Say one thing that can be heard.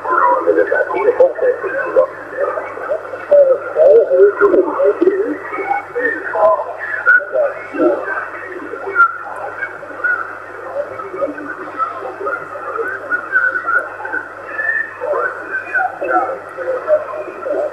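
A radio receiver plays a crackly, muffled signal through a small loudspeaker.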